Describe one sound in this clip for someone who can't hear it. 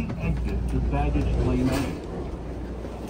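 A train rumbles low and steady.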